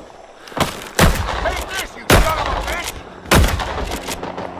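A rifle fires loud, sharp shots close by.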